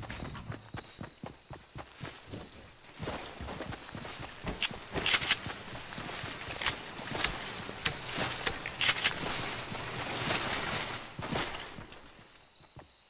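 Footsteps run quickly on hard ground.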